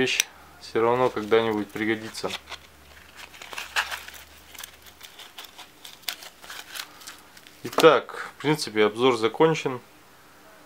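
Small plastic and metal parts click and rattle as hands handle them.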